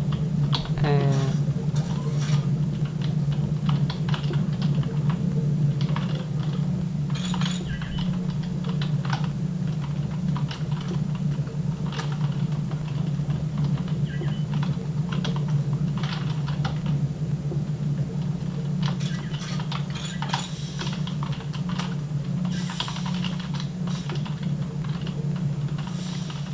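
Game gunfire and effects play from nearby loudspeakers.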